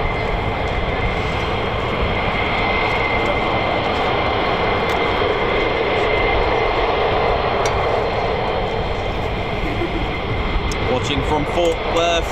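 A jet engine roars steadily nearby with a high whine.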